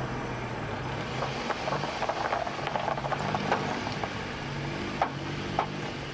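Car tyres crunch slowly over gravel.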